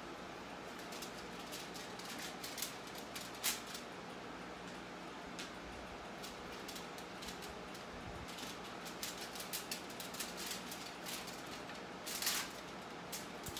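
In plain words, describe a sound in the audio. Metal tongs clink and scrape against a metal baking tray.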